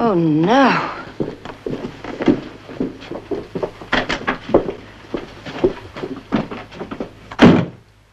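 Footsteps sound on a floor.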